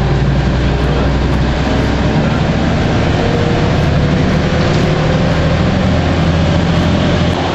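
A bus engine rumbles steadily while driving along a street.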